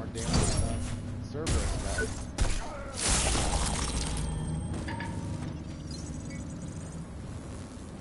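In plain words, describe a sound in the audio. Heavy mechanical footsteps clank on metal.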